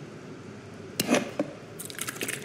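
A small glass bottle is picked up with a light clink.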